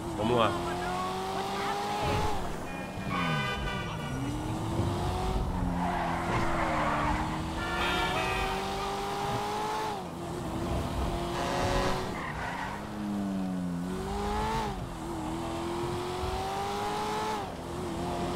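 A sports car engine revs hard, rising and falling in pitch as the gears shift.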